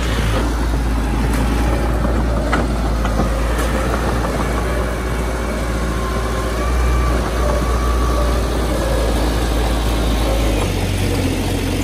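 A small bulldozer's diesel engine rumbles steadily close by.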